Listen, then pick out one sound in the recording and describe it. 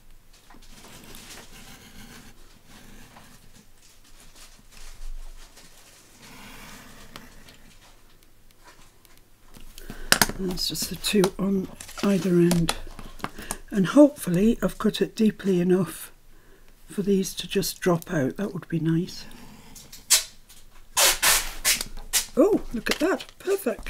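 A pen scratches lightly along paper.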